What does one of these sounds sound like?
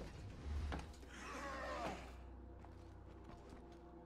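A car door shuts with a thud.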